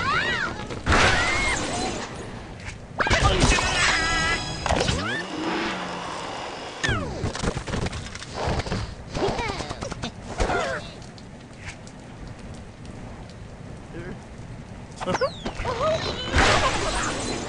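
A bird is launched from a slingshot and whooshes through the air.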